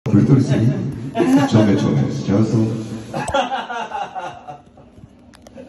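A middle-aged man sings loudly into a microphone.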